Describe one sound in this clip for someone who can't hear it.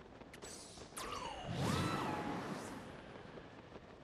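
Wind rushes loudly in a sudden strong gust, then fades.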